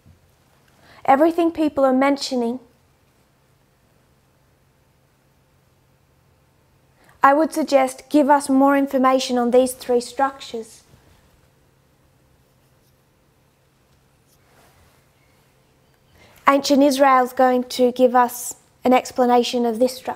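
A woman speaks calmly into a close microphone, in short bursts with pauses.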